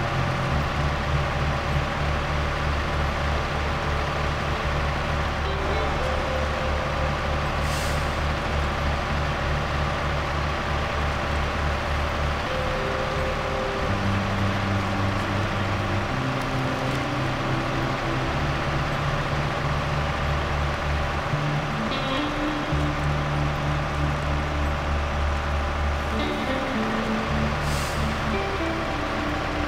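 A heavy truck engine rumbles steadily, its pitch shifting as gears change.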